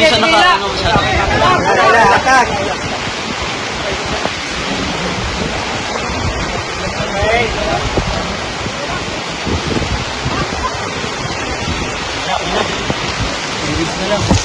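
Floodwater rushes and splashes as a rescuer swims.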